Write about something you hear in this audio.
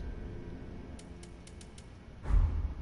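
Soft menu clicks tick several times in quick succession.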